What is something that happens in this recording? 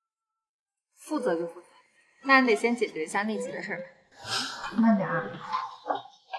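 A young woman speaks close by, calmly and firmly.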